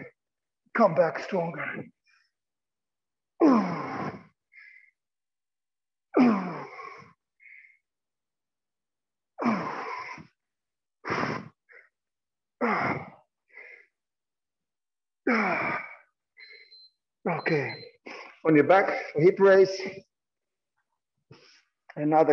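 A man speaks in short, calm bursts, heard clearly as if through a microphone.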